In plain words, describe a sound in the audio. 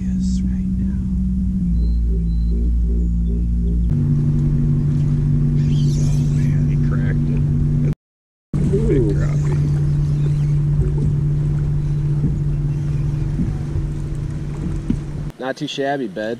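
An electric boat motor hums steadily.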